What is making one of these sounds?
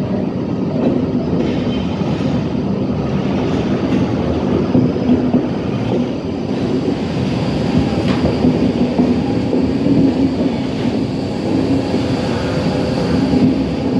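Train wheels clatter and squeal on the rails as the carriages roll past.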